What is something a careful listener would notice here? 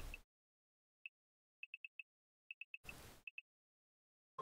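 Short, soft, high beeps tick in quick bursts.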